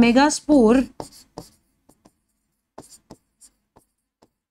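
A marker taps and scratches on a board.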